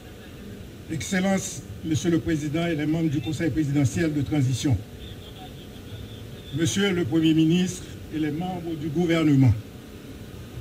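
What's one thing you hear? A man speaks loudly and formally through a microphone and loudspeakers, outdoors.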